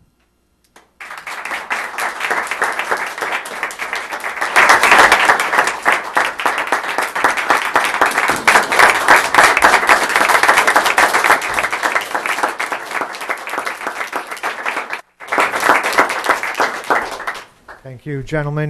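A crowd applauds steadily in a room.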